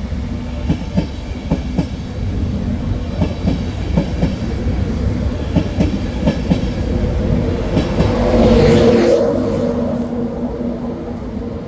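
A passenger train rolls past close by with a steady rumble.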